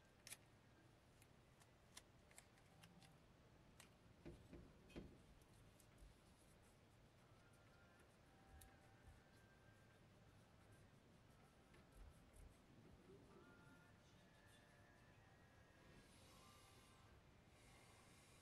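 Hands rub and scrape at a paper speaker cone, with small clicks and taps close by.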